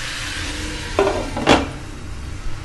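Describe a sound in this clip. A glass lid clanks down onto a pan.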